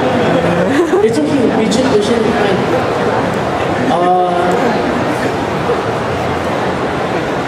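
A man speaks through a microphone and loudspeaker.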